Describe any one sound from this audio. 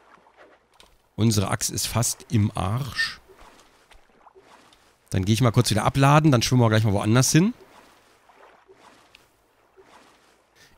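Oars dip and splash in calm water.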